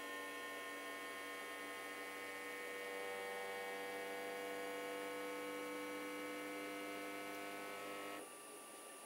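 A 3D printer's motors whine with steady, layered tones, then stop.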